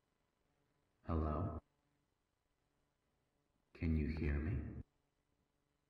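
A young man speaks a few short words into a close microphone.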